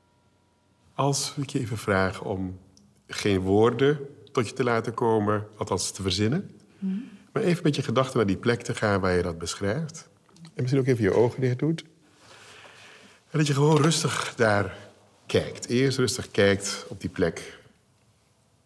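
A man speaks calmly and at length, close to a microphone.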